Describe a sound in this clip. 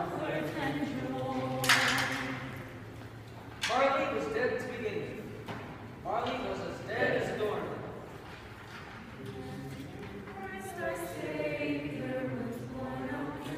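Feet shuffle and step on a hard floor in a large echoing hall.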